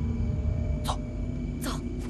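A man whispers urgently close by.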